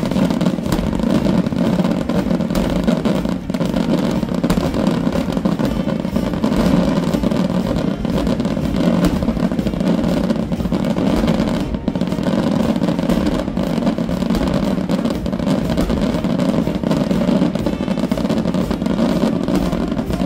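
A large outdoor crowd cheers and claps.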